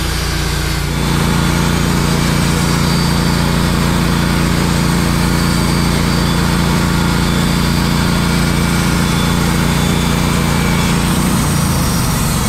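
A band saw whines as it cuts through a log.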